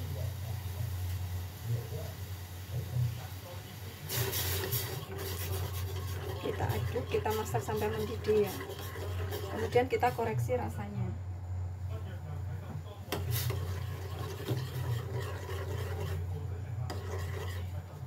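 Liquid bubbles and simmers in a pot.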